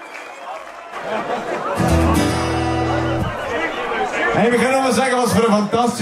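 A band plays lively music.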